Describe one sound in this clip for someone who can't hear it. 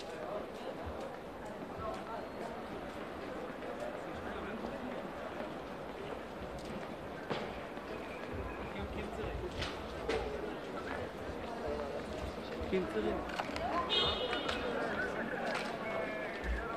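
Several men talk outdoors at a distance.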